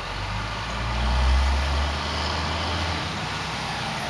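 A garbage truck engine rumbles nearby.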